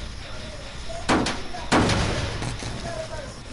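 A machine sputters and bangs loudly with a burst of sparks.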